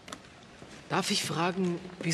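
A middle-aged woman speaks calmly and firmly.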